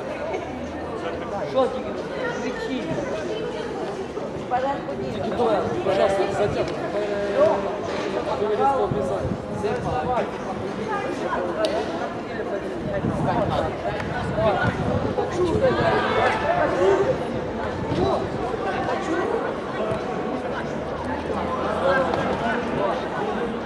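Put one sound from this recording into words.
A crowd of boys chants and cheers close by.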